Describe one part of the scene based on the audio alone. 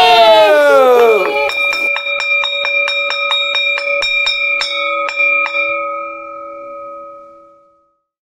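A small gong is struck rapidly many times and rings out, slowly fading.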